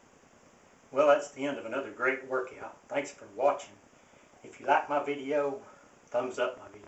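A middle-aged man speaks with emphasis close to the microphone.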